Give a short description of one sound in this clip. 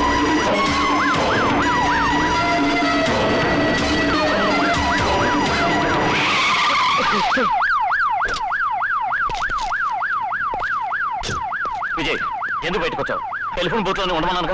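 A police siren wails in a rapid rising and falling whoop.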